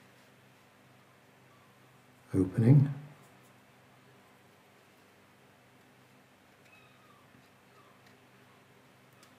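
A paintbrush dabs on watercolour paper.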